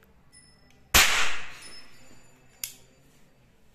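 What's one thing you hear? A toy gun snaps with a sharp click.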